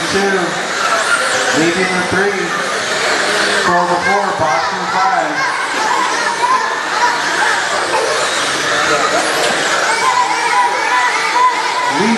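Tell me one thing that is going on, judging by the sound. Tyres of small model cars scrape on loose dirt.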